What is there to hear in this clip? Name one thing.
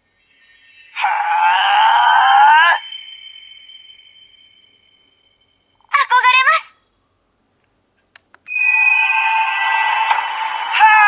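Electronic sound effects and music play from a toy's small speaker.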